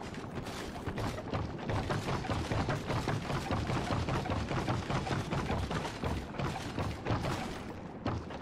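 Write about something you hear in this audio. Hands and feet clunk on the rungs of a wooden ladder.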